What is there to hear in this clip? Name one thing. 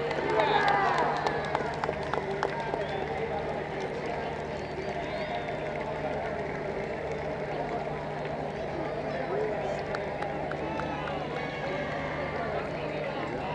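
A crowd of spectators chatters loudly outdoors.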